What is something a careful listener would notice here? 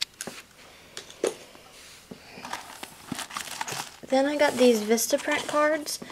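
Plastic wrapping crinkles and rustles as it is handled.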